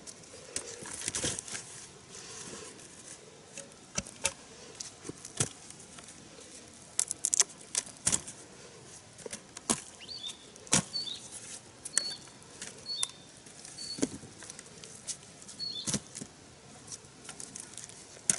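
Cassava roots thump and knock as they drop into a woven basket.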